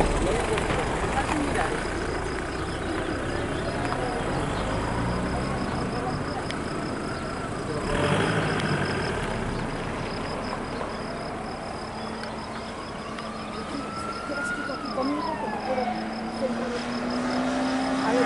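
Cars drive past on a road, their tyres hissing on the road.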